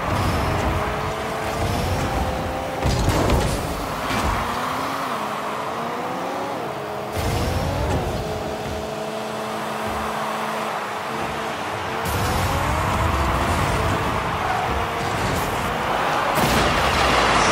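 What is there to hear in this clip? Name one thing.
A video game car engine hums and revs, rising and falling in pitch.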